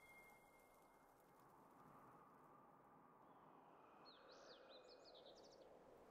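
A fighter in a game strikes at small creatures with swishing, chiming effects.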